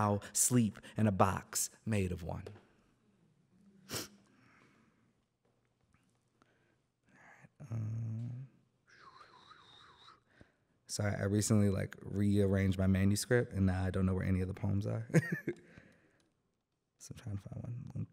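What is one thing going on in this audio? A young man reads aloud calmly into a microphone, heard through loudspeakers in a large room.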